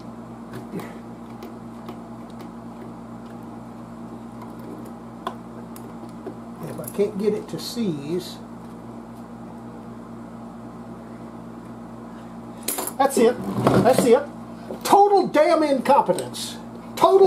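Patch cord plugs click into sockets.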